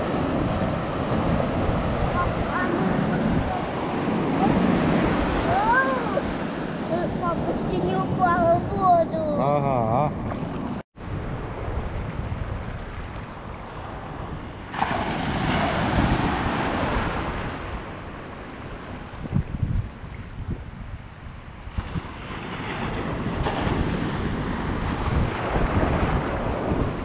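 Waves wash and foam onto the shore.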